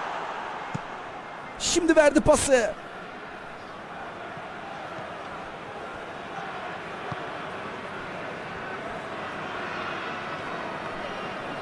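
A large stadium crowd murmurs and roars steadily in the distance.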